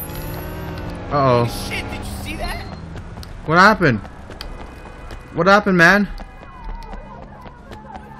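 Footsteps slap quickly on pavement as a man runs.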